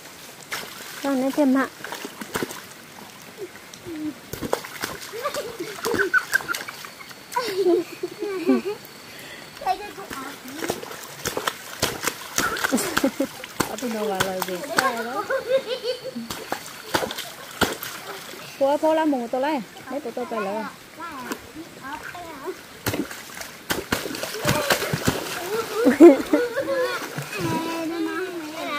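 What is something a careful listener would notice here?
Young girls talk and shout playfully close by.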